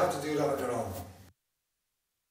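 A frame drum rings with deep, booming hand strikes and then stops.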